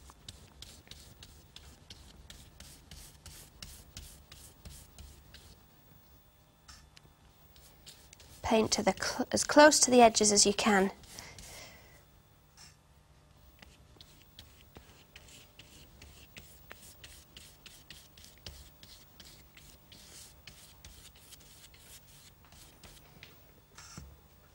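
A brush dabs and taps rapidly on paper.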